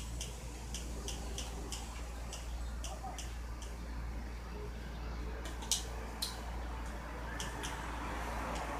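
Short electronic ticks click repeatedly as a menu scrolls.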